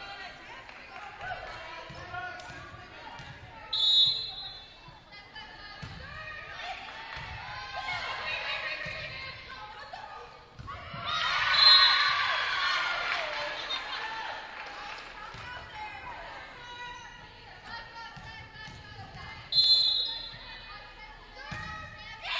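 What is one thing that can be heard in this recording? Young women players shout and call out to each other.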